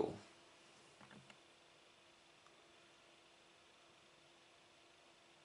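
Jigsaw puzzle pieces click softly as a hand sets them down.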